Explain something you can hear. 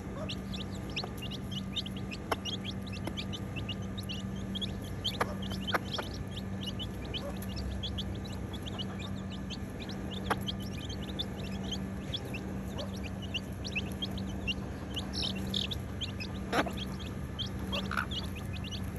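Chicks peep rapidly and constantly, close by.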